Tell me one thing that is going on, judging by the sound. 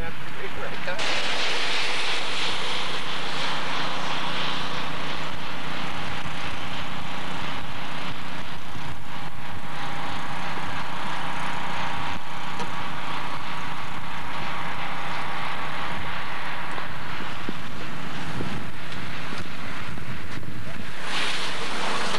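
A car drives along a slushy road with a steady rushing noise.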